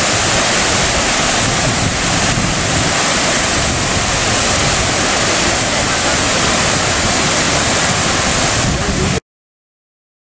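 A waterfall rushes and roars steadily.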